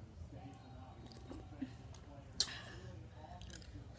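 A young boy slurps a drink from a cup.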